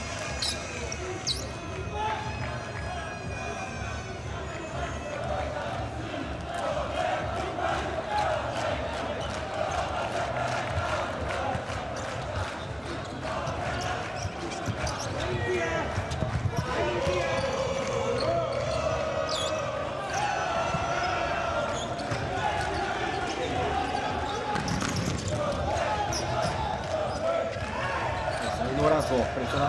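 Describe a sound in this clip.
A crowd cheers and chants in a large indoor arena.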